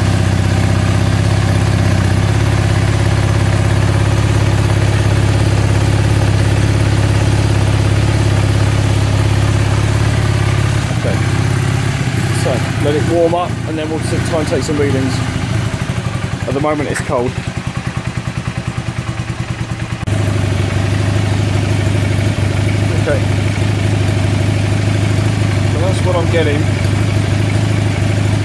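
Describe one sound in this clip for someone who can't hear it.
A motorcycle engine idles close by with a steady, low throbbing hum.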